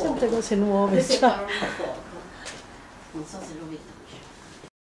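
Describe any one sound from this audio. A woman sings nearby.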